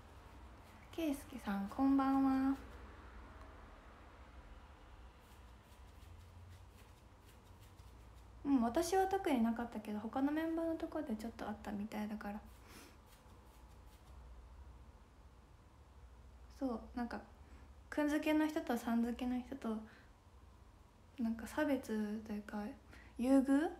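A young woman talks softly and casually, close to a microphone, in short bursts with pauses.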